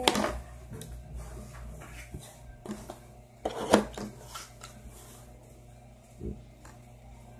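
Plastic pieces clatter on a table.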